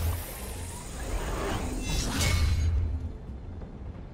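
A cable zips taut through the air.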